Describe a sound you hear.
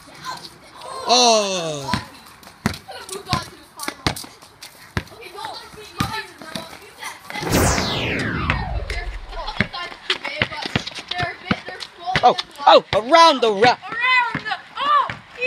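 Young boys shout and call out excitedly outdoors.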